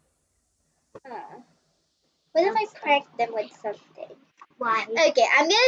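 A young girl talks with animation into a microphone, heard close up.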